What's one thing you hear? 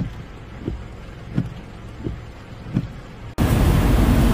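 A windshield wiper thumps back and forth at an even pace.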